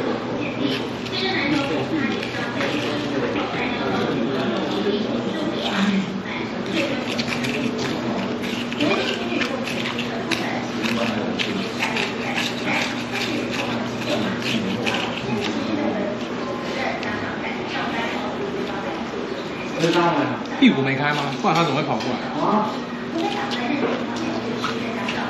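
People chatter nearby in a room.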